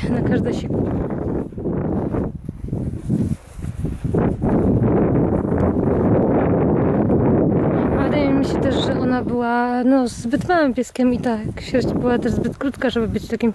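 A small dog runs through grass with its paws rustling.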